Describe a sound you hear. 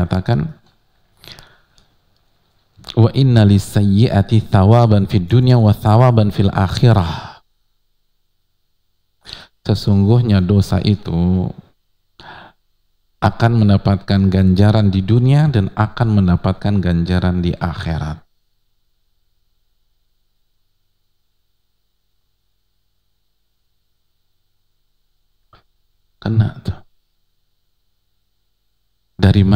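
A man speaks calmly and with expression into a close microphone, pausing now and then.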